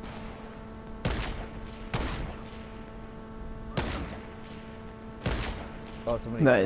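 A sniper rifle fires single loud shots, a few seconds apart.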